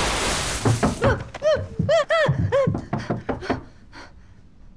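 A young woman cries out in distress, close by.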